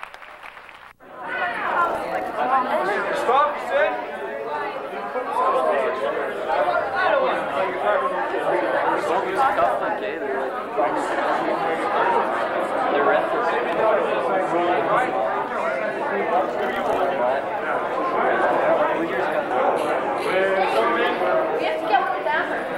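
A crowd of young people chatter loudly all around in an echoing room.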